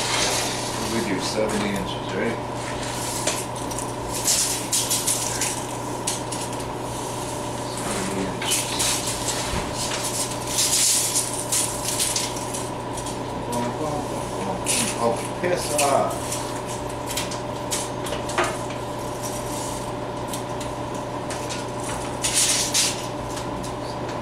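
Metal rods clank and rattle as they are handled.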